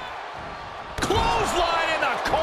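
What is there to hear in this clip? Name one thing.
A wrestler's kick lands with a sharp smack.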